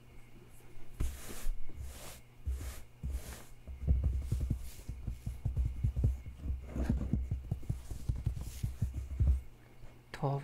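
Hands rub and brush softly across paper pages close up.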